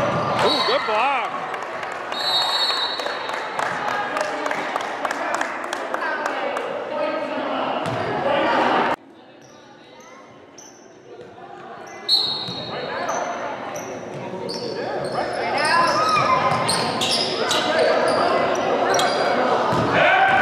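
Young players call out to each other in a large echoing gym.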